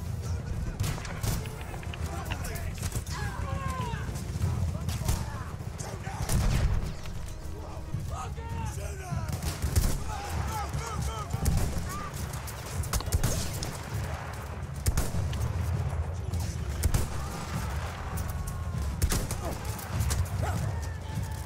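Gunshots crack sharply, near and far.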